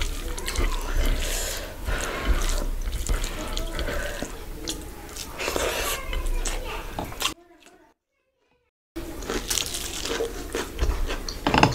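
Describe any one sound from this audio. A hand squishes rice and curry on a plate.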